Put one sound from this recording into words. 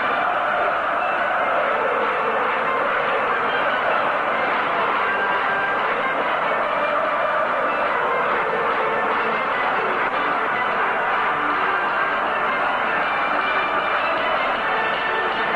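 A large stadium crowd chants and roars loudly.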